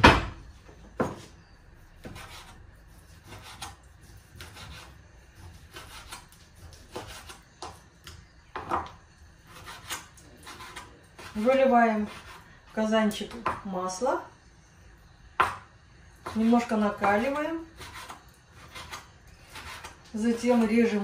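A knife taps and chops on a cutting board.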